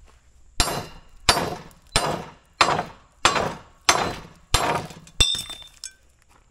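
A hammer strikes metal in sharp, evenly spaced blows.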